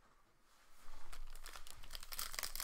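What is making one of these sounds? Cards rustle and click as they are handled.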